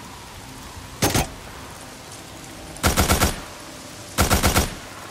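A pistol fires in quick bursts of shots.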